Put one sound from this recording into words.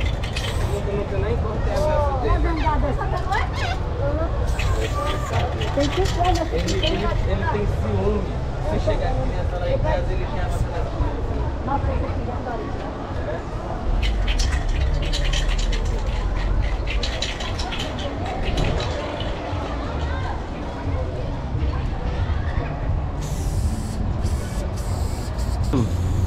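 A spray can hisses in short bursts close by.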